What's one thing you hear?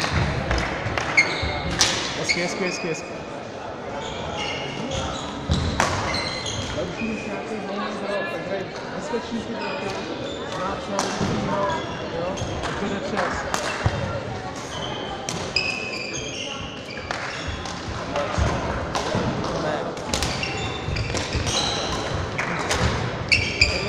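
Shoes squeak sharply on a hard floor, echoing in a large hall.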